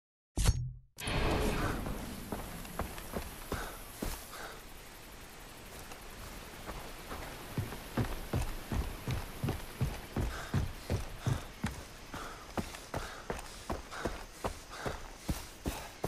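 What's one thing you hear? Footsteps tread steadily over wooden planks and a dirt path.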